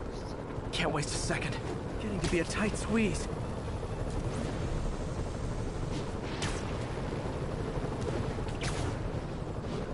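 Air rushes past in sharp whooshes as a figure swings high between buildings.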